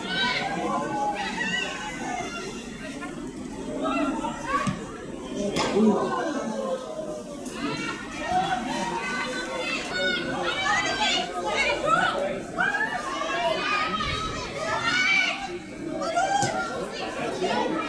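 Footballers kick a ball with dull thuds.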